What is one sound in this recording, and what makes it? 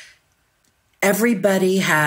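A middle-aged woman speaks over an online call.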